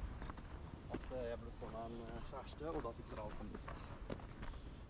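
A man talks calmly while passing close by.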